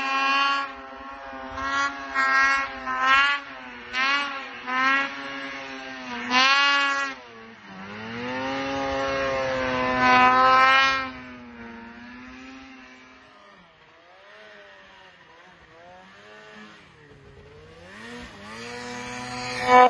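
A snowmobile engine revs and roars through deep snow.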